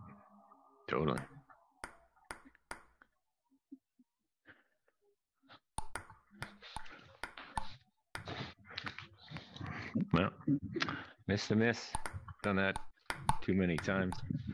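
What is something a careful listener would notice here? A table tennis ball clicks sharply as it bounces back and forth.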